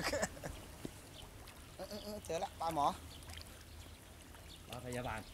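Water sloshes around people wading.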